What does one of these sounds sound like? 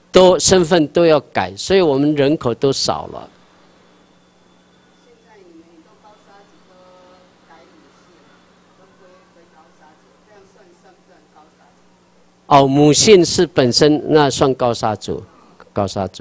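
A man speaks through a microphone and loudspeaker, in pauses.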